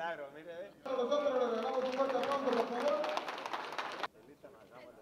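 People clap their hands.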